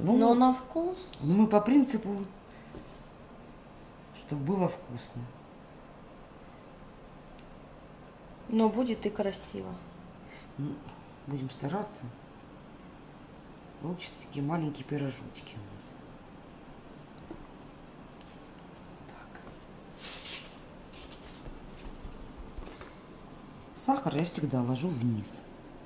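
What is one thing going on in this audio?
Hands pat and press soft dough.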